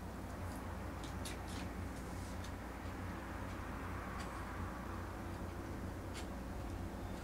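Chopsticks click softly against a bowl.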